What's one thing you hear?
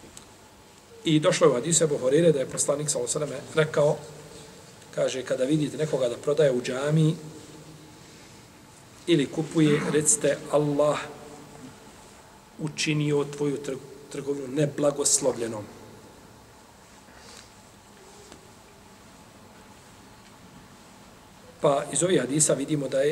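A middle-aged man reads out slowly into a close microphone, in phrases with long pauses.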